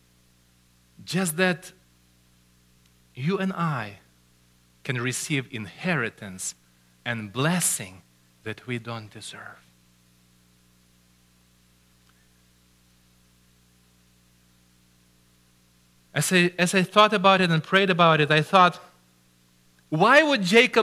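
A middle-aged man preaches with animation through a microphone in an echoing hall, pausing between phrases.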